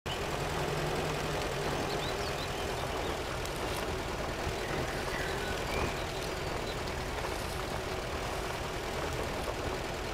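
An engine rumbles steadily.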